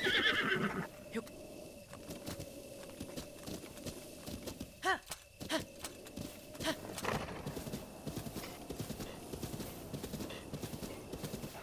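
A horse gallops over grass with rhythmic hoofbeats.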